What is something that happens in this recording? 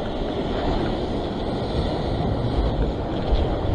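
Waves crash and surge against rocks outdoors.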